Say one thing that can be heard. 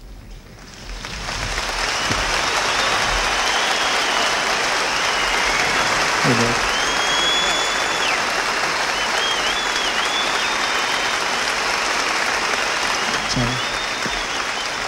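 A large crowd cheers and screams loudly in a big hall.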